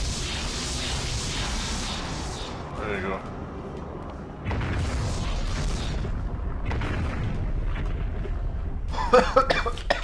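A giant creature's heavy feet stomp and thud on a stone floor.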